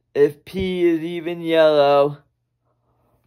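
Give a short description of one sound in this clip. A young man sings a long, drawn-out note close to the microphone.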